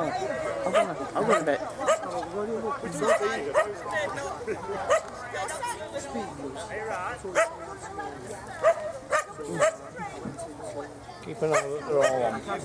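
A man talks casually nearby outdoors.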